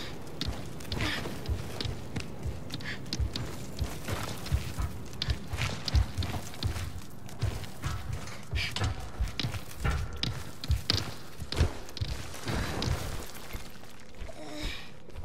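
Light footsteps patter quickly on stone.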